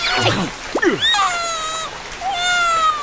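A small cartoon creature whimpers and wails in a high, wavering voice.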